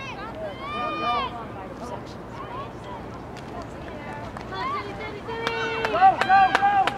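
Adult spectators shout and cheer nearby, outdoors.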